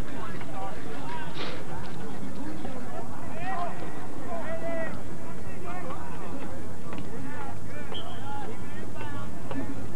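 Players shout and call out across an open field, heard from a distance.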